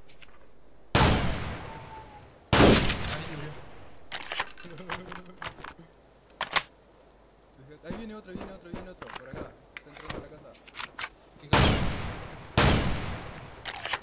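A shotgun fires loud blasts that echo away.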